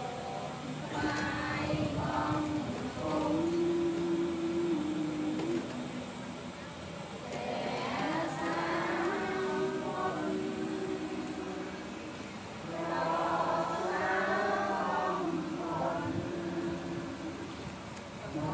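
A group of people chant together in unison, outdoors.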